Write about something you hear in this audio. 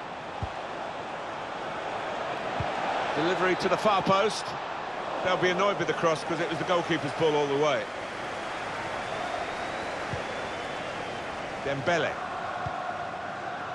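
A large stadium crowd roars steadily in the background.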